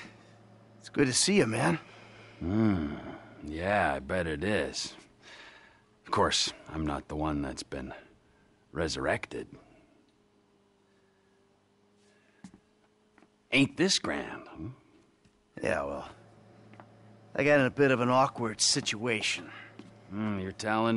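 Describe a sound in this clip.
Another man answers in a casual voice.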